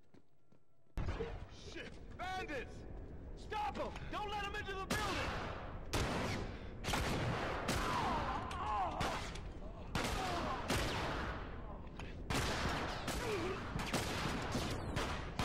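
Gunshots ring out in loud, repeated bursts.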